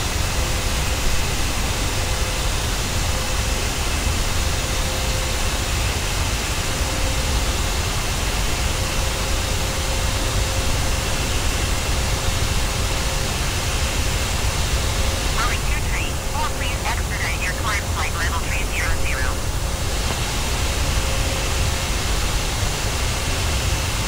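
The turbofan engines of a jet airliner drone at cruise.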